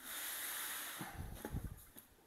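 A heavy ceramic toilet thumps down onto cardboard.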